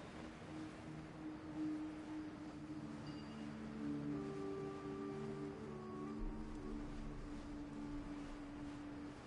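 Wind rushes softly past while gliding through the air.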